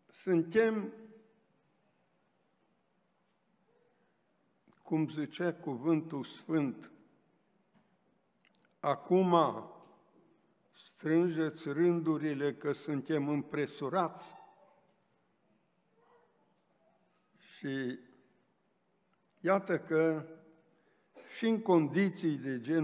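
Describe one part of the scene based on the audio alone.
An elderly man speaks slowly and earnestly into a microphone, with pauses.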